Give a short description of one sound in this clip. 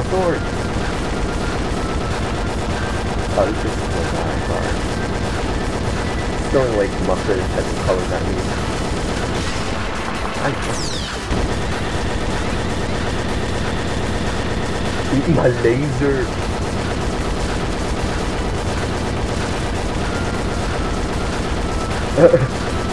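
A laser beam roars steadily.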